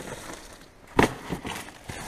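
Rubbish thuds as it is dropped into a bin.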